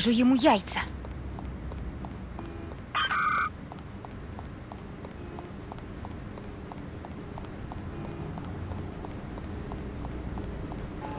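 Footsteps run quickly and steadily on a hard floor.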